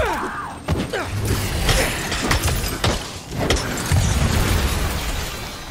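An explosion bursts with a loud rumble.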